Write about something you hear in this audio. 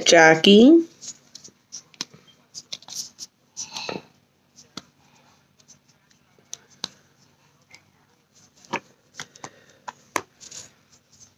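A makeup sponge dabs and taps softly against skin.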